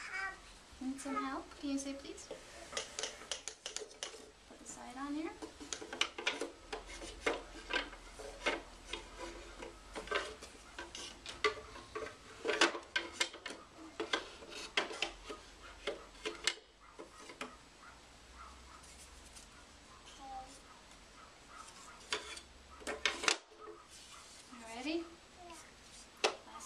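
A toddler babbles in a high voice.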